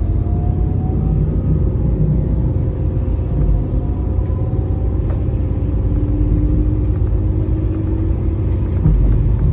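An electric motor whines and rises in pitch as a train speeds up.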